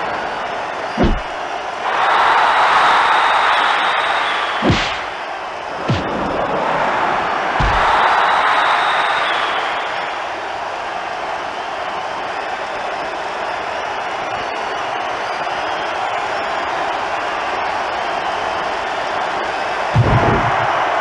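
Heavy thuds of bodies slamming hit the floor now and then.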